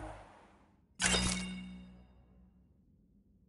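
A game menu plays a bright, ringing confirmation chime.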